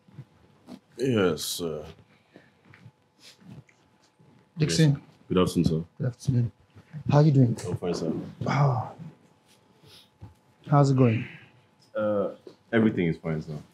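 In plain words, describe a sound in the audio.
An adult man speaks calmly nearby.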